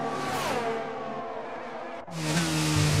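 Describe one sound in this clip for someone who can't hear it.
A racing car engine roars past and drops in pitch.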